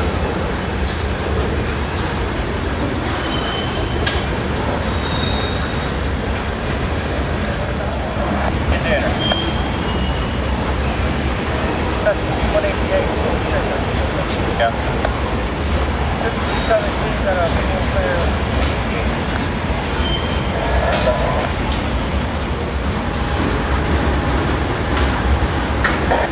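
A freight train rumbles and clatters steadily past close by.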